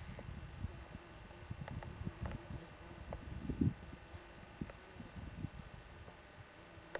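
Wind blows across an open field and buffets the microphone in gusts.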